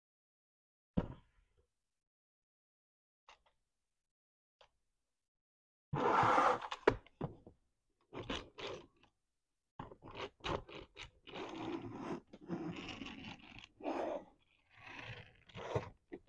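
Plastic toy parts click and rattle as they are handled.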